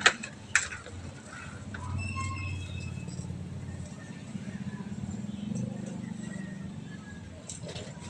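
Bicycle tyres roll over dirt.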